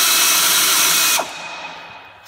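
A pneumatic tool hisses loudly.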